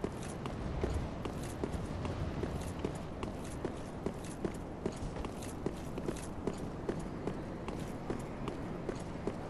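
Armored footsteps clank quickly and steadily on stone.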